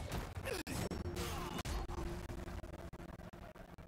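Stone shatters in a loud, crashing explosion.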